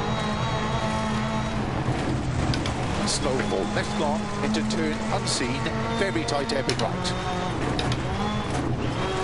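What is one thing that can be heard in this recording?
A rally car engine roars and revs at high speed.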